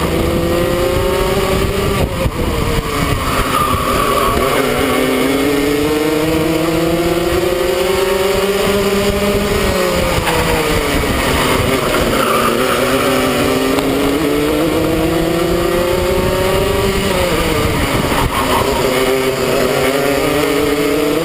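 A kart engine revs loudly up and down close by, whining higher on the straights and dropping into the corners.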